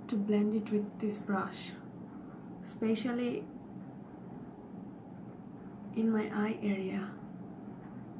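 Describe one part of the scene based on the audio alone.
A young woman speaks calmly close to a microphone, in short bursts.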